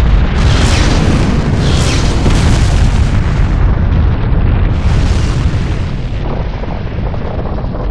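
A huge energy blast roars and rumbles with a deep boom.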